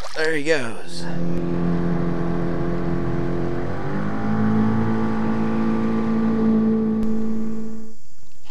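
A boat's outboard motor hums steadily and speeds up.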